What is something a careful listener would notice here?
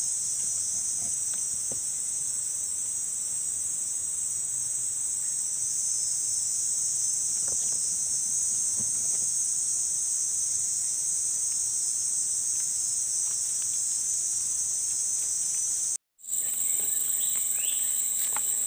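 Leaves rustle softly as a hand handles a fruit on a branch.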